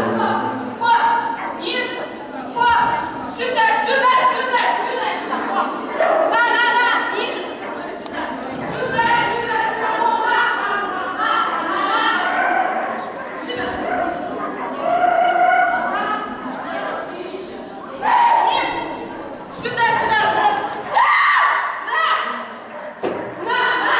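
A young woman calls out commands to a dog with animation in a large echoing hall.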